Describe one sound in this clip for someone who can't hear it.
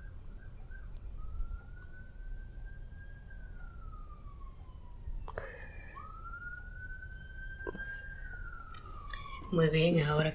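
A sleeping woman makes a thin, high whistling sound through her nose as she breathes, rising and then falling slowly.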